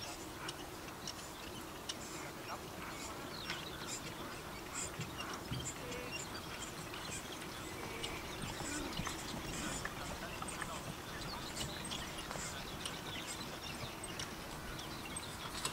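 A horse's hooves thud on grass as a carriage trots past.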